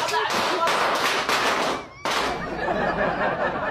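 A young woman laughs loudly and close by.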